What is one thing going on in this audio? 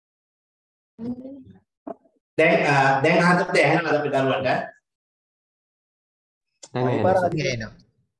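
A man lectures calmly into a microphone, heard through an online call.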